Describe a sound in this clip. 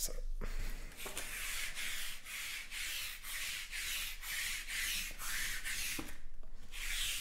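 A sticky lint roller rasps back and forth over fabric in quick, repeated strokes.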